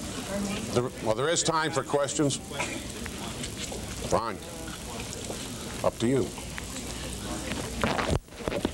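An older man speaks to an audience in an echoing hall.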